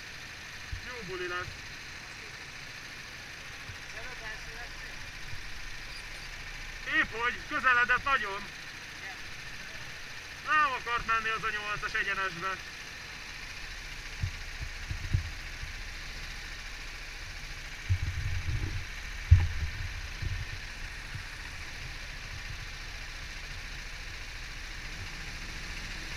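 Go-kart engines idle and rumble nearby.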